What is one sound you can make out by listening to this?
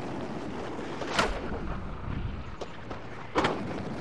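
A skateboard clacks as it pops off the ground.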